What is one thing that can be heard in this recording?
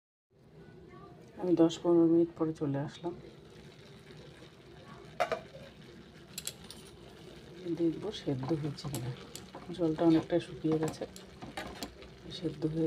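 Food sizzles in a pan.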